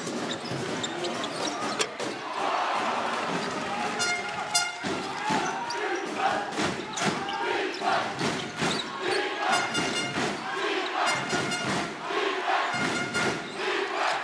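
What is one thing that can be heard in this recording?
A large indoor crowd cheers and murmurs, echoing through a big hall.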